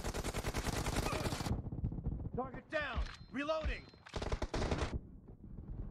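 Automatic rifle fire rattles in rapid bursts in a video game.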